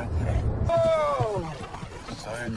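A young man shouts loudly outdoors.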